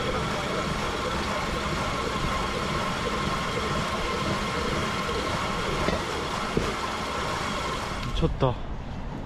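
Wheels of a rail bike rumble and hum steadily along steel rails.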